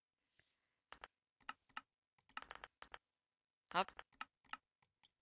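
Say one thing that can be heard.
Soft menu clicks sound a few times.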